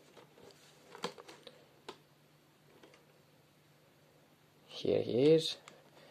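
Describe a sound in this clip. Cardboard toy boxes rustle and tap as they are handled.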